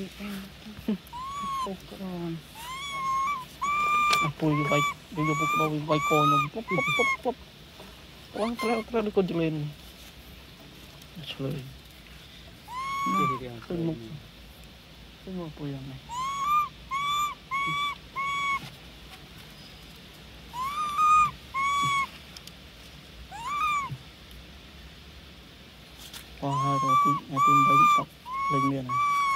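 Young monkeys squeal and chirp repeatedly close by.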